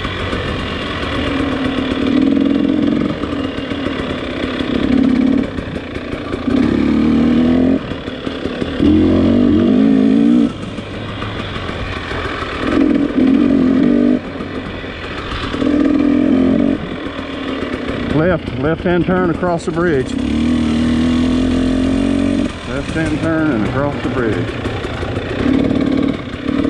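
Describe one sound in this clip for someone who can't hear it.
A dirt bike engine revs up and down, rising and falling in bursts.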